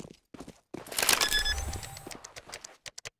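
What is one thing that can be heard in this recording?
A keypad beeps as buttons are pressed.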